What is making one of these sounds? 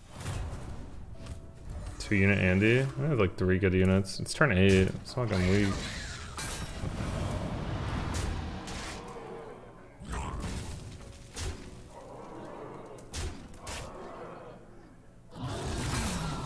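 Magical attack effects whoosh and crash with sharp hits.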